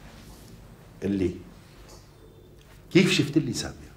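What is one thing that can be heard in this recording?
An older man speaks calmly nearby.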